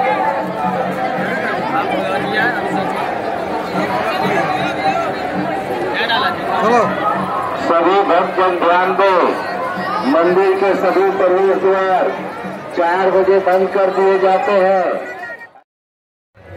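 A dense crowd chatters outdoors.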